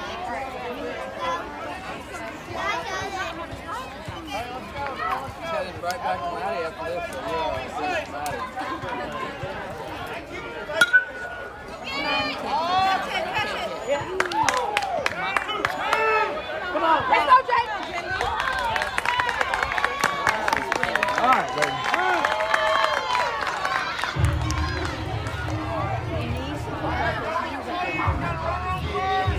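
Young children shout and cheer excitedly outdoors.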